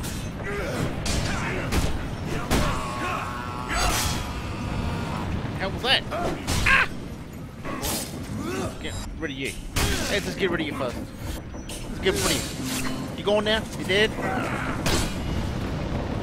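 Men grunt and cry out as they fight.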